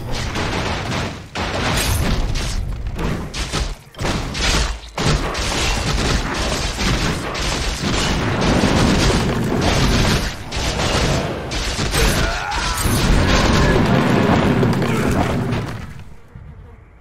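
Magic blasts and battle effects crackle and boom in a fight.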